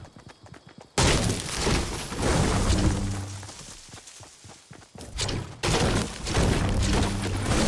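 A pickaxe strikes wood with repeated knocks.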